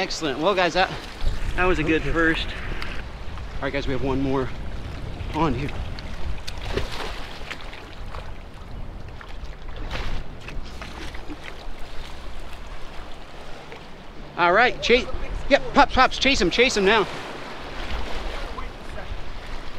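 Shallow water washes and splashes over rocks.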